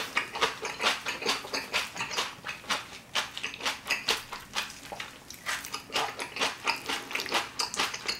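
Chopsticks click against a dish.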